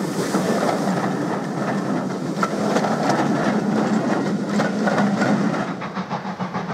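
Train carriages rumble and clatter past on the rails close by.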